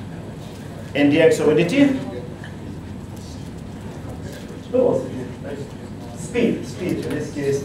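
A middle-aged man speaks with animation through a clip-on microphone.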